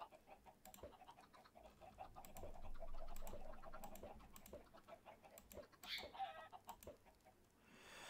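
Many chickens cluck and squawk.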